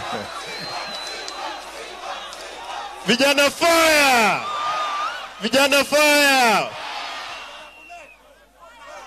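A large crowd murmurs and cheers outdoors.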